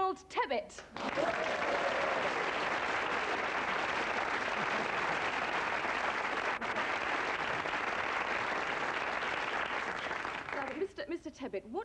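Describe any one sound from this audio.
A studio audience applauds loudly.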